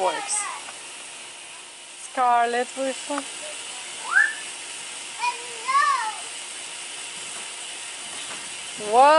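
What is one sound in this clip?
Young girls shout and squeal playfully outdoors.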